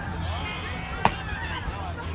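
A softball smacks sharply into a catcher's glove.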